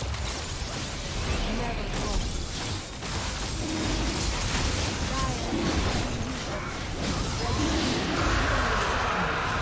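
Magic spells blast and crackle in a fast video game fight.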